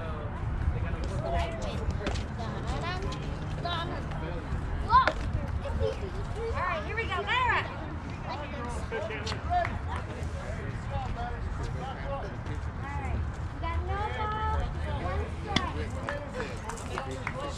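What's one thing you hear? Young girls call out and cheer from across an open field.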